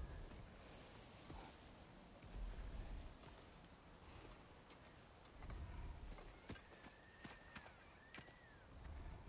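Footsteps crunch on dry earth.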